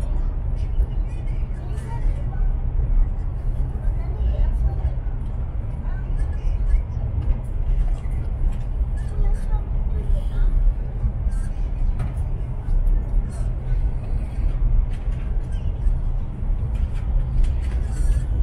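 Wheels click and rattle over rail joints.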